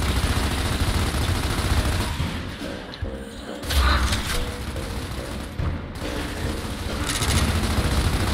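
Rapid gunfire rattles loudly in a large echoing hall.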